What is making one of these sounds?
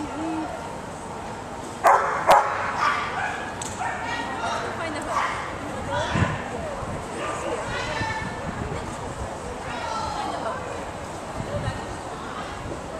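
A woman calls out commands to a dog with animation.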